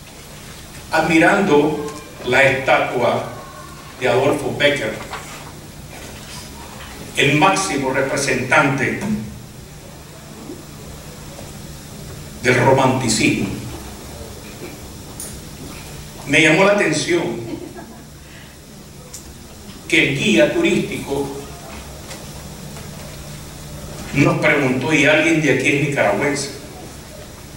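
A man speaks slowly and with emphasis through a microphone in a large echoing hall, with long pauses.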